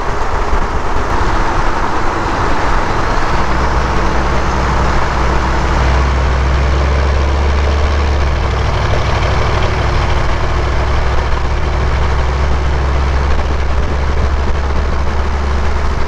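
A turbo diesel pickup's engine rumbles under load through a straight exhaust.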